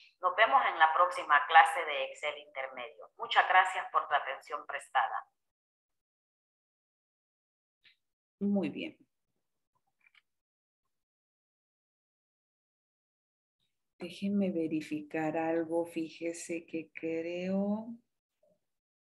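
A woman speaks calmly over an online call, heard through a microphone.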